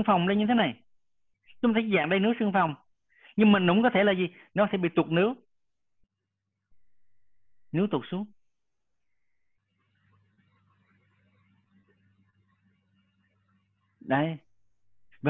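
A man speaks calmly, explaining, heard through an online call.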